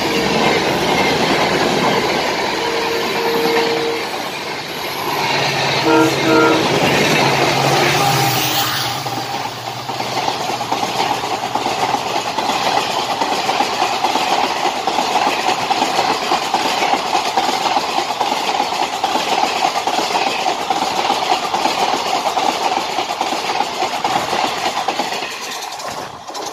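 A passing train rumbles and clatters loudly over the rails.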